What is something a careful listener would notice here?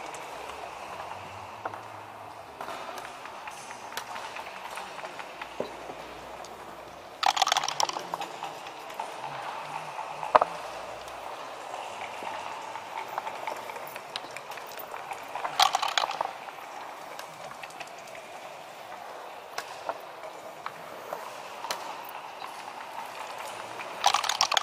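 Checkers click and slide on a wooden board.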